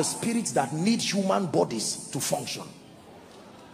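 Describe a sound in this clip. A man shouts forcefully into a microphone.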